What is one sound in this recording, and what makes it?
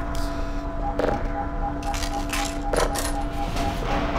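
A metal door creaks open.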